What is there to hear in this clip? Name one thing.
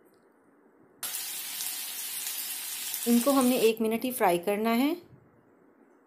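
Hot oil sizzles in a pan.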